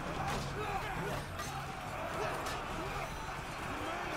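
A large crowd of soldiers roars and clashes in battle.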